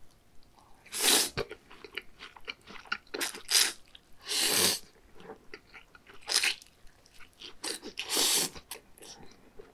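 A man loudly slurps noodles several times.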